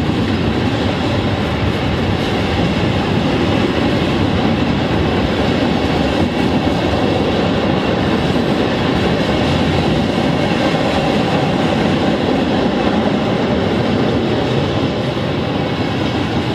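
A freight train rumbles past close by, wheels clattering on the rails.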